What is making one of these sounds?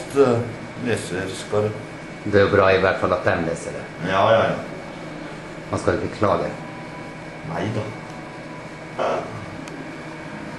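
A young man talks casually close by, indoors.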